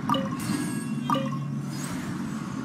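Bright game chimes ring twice in quick succession.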